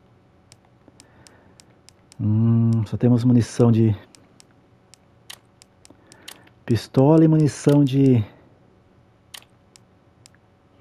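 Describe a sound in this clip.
Soft interface clicks tick as a menu cursor moves from item to item.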